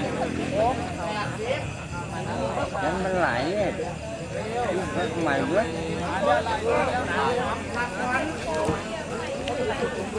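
A crowd of men chant nearby, outdoors.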